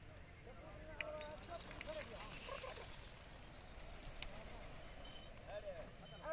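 Pigeons flap their wings as they take off in a flock.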